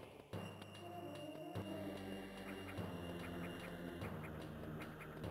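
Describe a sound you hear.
Synthesized video game music plays with steady, held notes.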